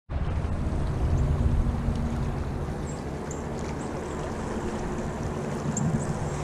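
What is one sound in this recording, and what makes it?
A shallow river rushes and gurgles over stones close by.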